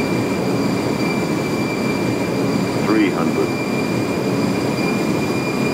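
Airliner jet engines roar steadily, heard from the cockpit.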